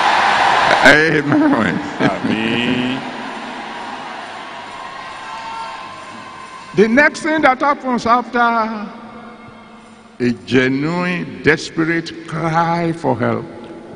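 A middle-aged man speaks with animation into a microphone, heard through loudspeakers in a big hall.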